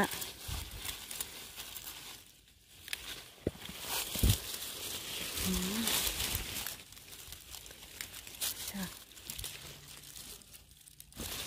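Leaves and stems rustle and crackle as a hand picks through plants close by.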